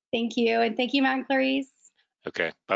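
A woman speaks cheerfully over an online call.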